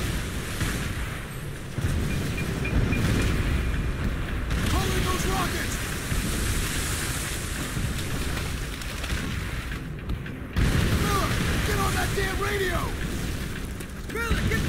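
Explosions boom and rumble all around.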